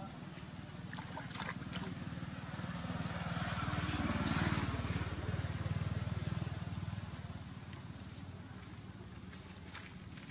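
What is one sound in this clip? A baby monkey splashes and thrashes in shallow water.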